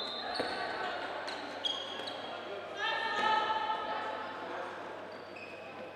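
A handball bounces on the floor in an echoing hall.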